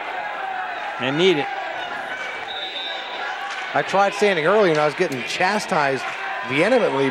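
Spectators shout and cheer loudly in bursts.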